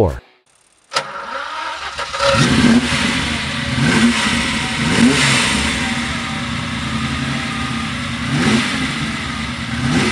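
A sports car's engine idles loudly through its exhausts, with occasional revs.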